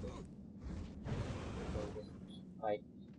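Fire roars in a burst of flame.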